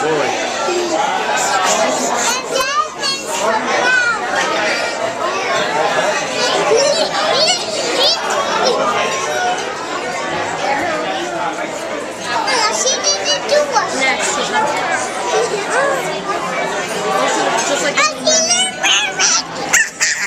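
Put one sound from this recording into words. A crowd of people chatter throughout.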